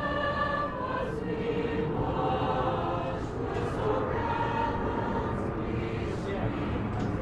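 A large choir sings together outdoors, heard through a microphone.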